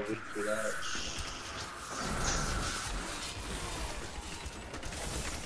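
Blows and impacts thud and clash.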